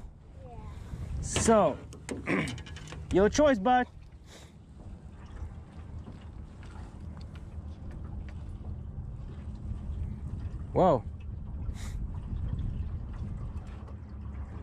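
Small waves lap gently against a boat's hull.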